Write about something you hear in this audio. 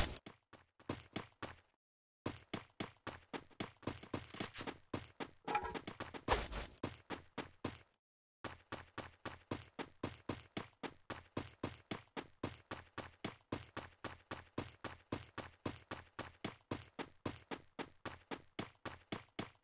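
Quick footsteps patter steadily as a game character runs.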